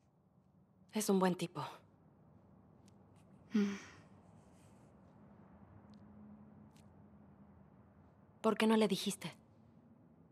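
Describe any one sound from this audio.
A second young woman answers quietly and close by.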